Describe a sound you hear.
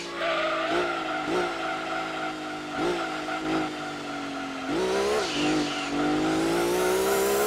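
A racing car engine whines loudly, its pitch dropping through downshifts and rising again as it speeds up.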